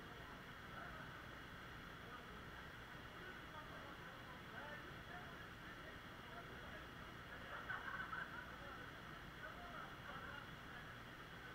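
A waterfall splashes steadily into a pool.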